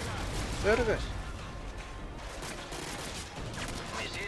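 Gunfire rattles in bursts nearby.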